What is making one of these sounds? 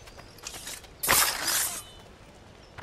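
Men scuffle and trade blows.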